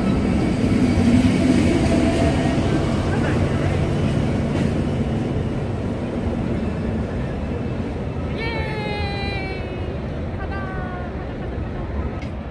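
A train rumbles as it pulls away from a platform.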